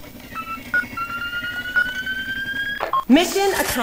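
An electronic tone rises steadily as a bomb is defused.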